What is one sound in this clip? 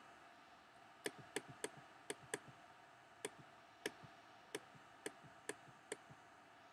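A creature laps water in repeated short gulps.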